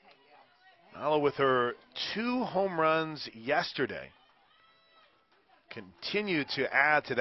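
A man nearby shouts and cheers loudly.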